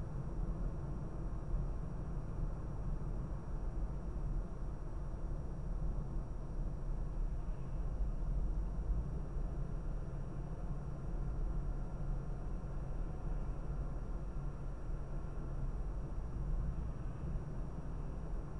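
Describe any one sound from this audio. A car engine hums steadily with low road rumble from inside the cabin.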